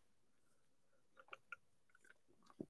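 A man gulps a drink of water.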